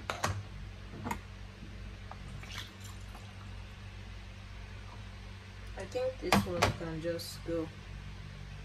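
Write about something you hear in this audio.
A plastic funnel taps against a glass bottle.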